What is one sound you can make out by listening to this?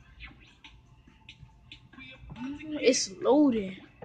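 A television plays the sounds of a video game.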